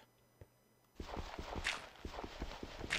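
Dirt crunches as it is dug and breaks apart.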